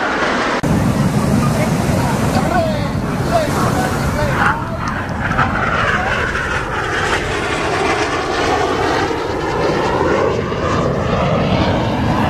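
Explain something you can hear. A crowd of people chatters and exclaims outdoors.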